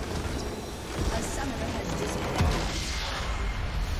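A structure explodes with a deep boom in a video game.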